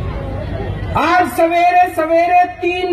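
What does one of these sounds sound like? A man speaks loudly and forcefully through a loudspeaker.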